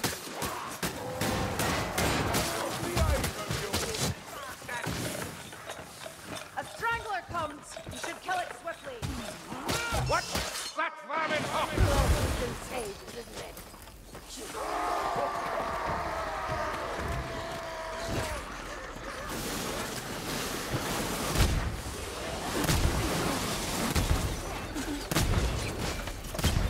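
Blades slash and thud into enemies in quick, heavy blows.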